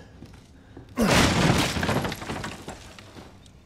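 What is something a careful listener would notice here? A wooden crate smashes and splinters.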